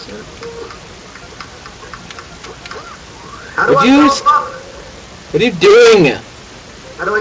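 Cartoonish game sound effects blip and squeak in short bursts.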